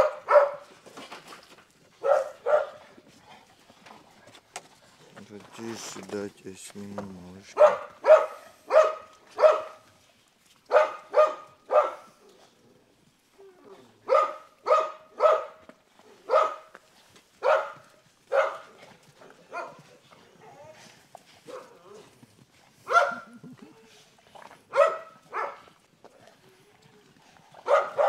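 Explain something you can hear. Dogs bark sharply and repeatedly nearby.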